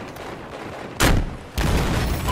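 A rocket launches with a loud whoosh.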